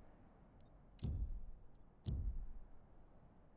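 A soft whoosh sweeps as a menu closes.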